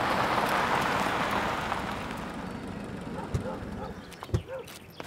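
A car engine rumbles and then dies down.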